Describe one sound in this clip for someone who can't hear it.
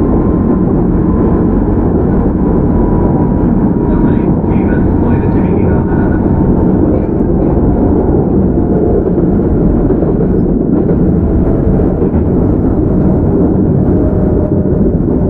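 Train wheels squeal faintly on the rails.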